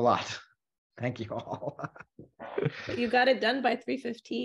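Several people laugh over an online call.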